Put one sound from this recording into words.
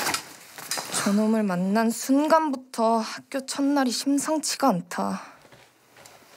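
A young woman speaks softly and thoughtfully.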